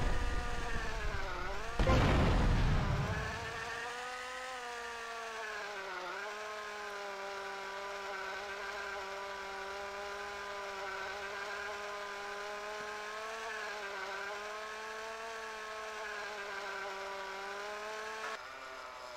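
A small toy plane engine buzzes steadily, its pitch wavering as it turns.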